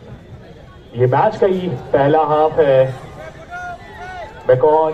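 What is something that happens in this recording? A man in the crowd shouts excitedly nearby.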